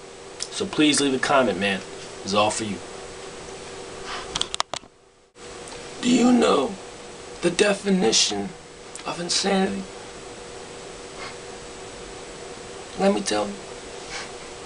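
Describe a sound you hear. A young man talks casually and close up.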